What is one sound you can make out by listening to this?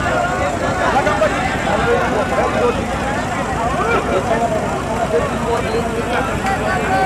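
A large outdoor crowd chatters and calls out all at once.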